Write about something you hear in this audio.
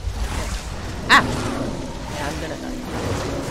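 An animal splashes into water.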